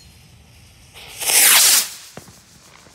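A firework rocket whooshes loudly into the sky.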